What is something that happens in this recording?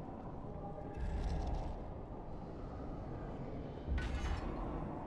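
Magic spell effects whoosh and crackle in bursts.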